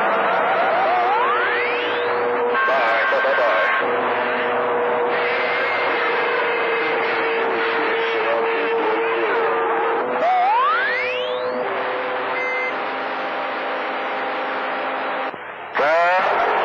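Rising, warbling whistles sound now and then through a radio loudspeaker.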